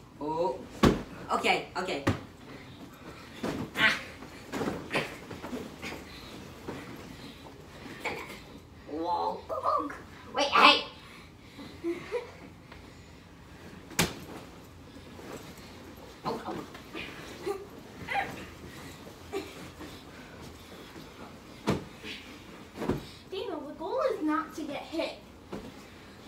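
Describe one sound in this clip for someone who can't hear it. Children laugh and shriek while playing.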